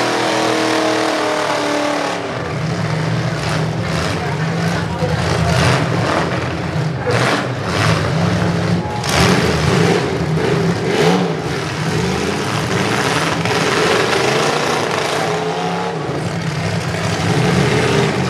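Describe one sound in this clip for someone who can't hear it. Metal crunches as cars smash into each other.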